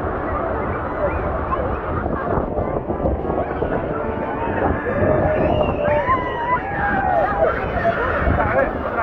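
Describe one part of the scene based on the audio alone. A crowd of men and women chatter and call out excitedly nearby.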